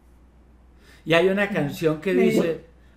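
An older man speaks over an online call.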